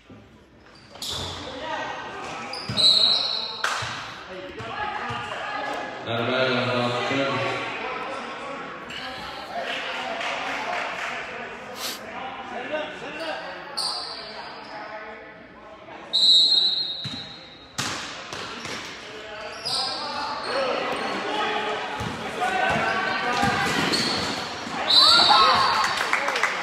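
Spectators chatter and cheer in a large echoing gym.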